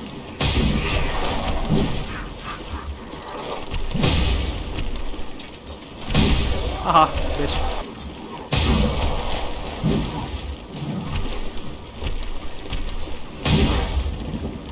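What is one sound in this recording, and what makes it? Heavy sword blows strike a monster with loud crashing impacts.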